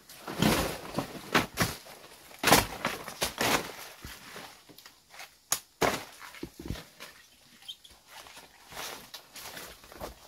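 Dry leaves rustle and crackle underfoot.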